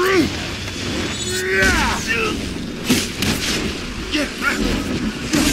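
Creatures screech and shriek.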